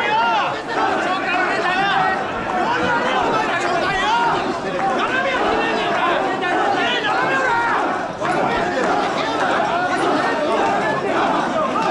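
A large crowd of men chant and shout loudly in rhythm close by.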